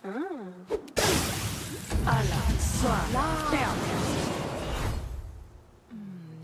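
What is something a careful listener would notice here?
Magical lightning crackles and roars in a loud burst.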